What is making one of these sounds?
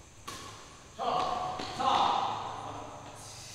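A man shouts in an echoing hall.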